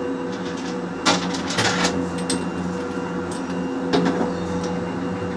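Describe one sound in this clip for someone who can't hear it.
A chairlift clanks and rattles as it passes.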